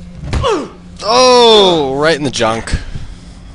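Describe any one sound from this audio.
A man groans loudly in pain.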